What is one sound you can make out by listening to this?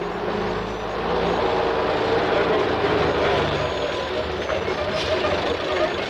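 A bus engine rumbles as the bus pulls up close.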